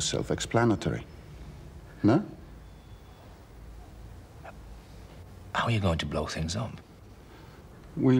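A middle-aged man speaks calmly and pointedly, close by.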